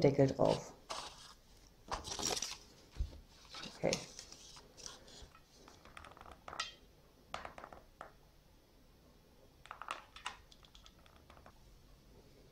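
Plastic items click and rustle as they are handled on a table.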